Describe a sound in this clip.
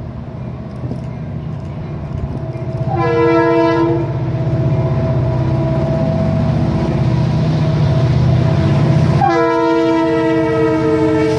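A diesel locomotive rumbles closer and passes by loudly.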